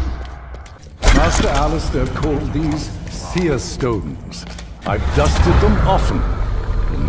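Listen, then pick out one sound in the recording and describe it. A magical burst of energy roars and swirls.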